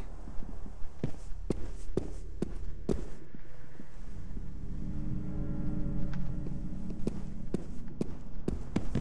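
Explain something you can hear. Footsteps thud quickly on wooden floors and stairs.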